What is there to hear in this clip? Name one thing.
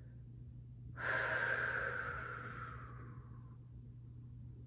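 A woman sighs softly.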